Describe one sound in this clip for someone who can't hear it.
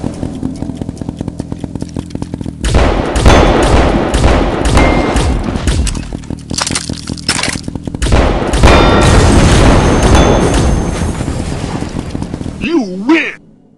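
A video game gun fires rapid bursts of shots.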